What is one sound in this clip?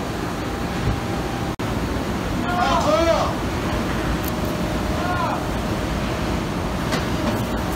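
Heavy machinery rumbles steadily nearby.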